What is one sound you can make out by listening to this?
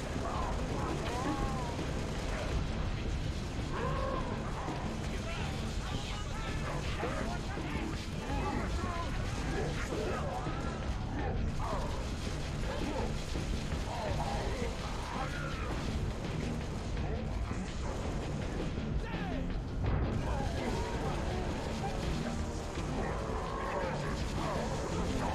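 Gunfire blasts in rapid bursts.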